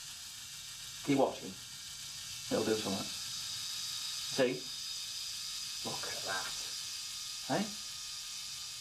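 A boy speaks in short, quiet bursts.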